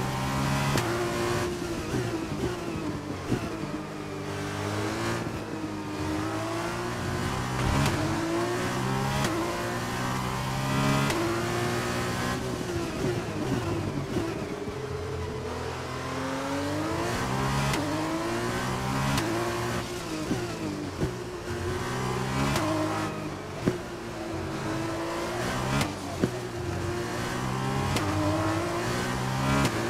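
A racing car engine screams, rising and falling in pitch as the gears shift.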